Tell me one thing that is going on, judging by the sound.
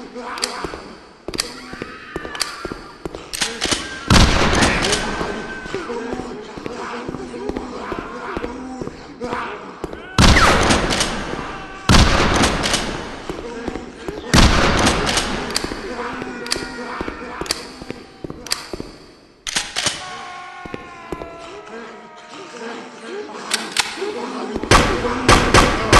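Zombies groan and moan.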